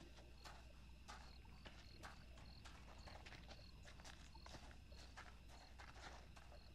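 Footsteps tread steadily on a hard wet surface.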